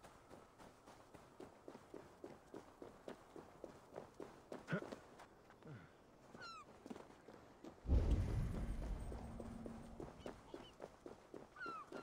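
Footsteps scrape and tap on rock.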